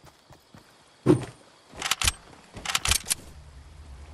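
A pickaxe strikes a wooden wall with sharp knocks.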